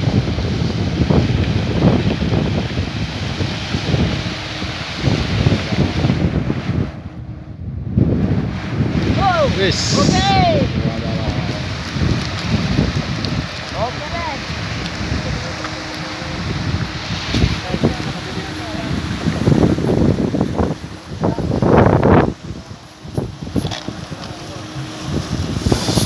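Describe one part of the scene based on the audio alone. Wind blows across the open outdoors.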